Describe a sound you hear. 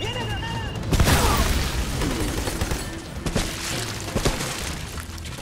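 Rifle shots crack loudly in bursts.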